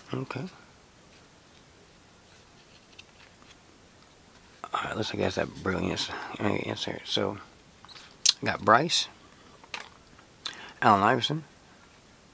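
Trading cards slide and click against each other in someone's hands.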